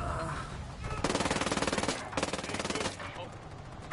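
Rifles fire in rapid bursts close by.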